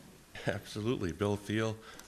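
A man speaks into a microphone.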